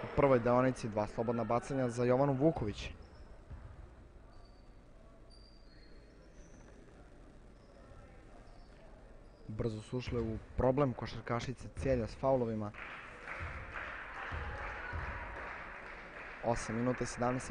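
Basketball shoes squeak on a hard court.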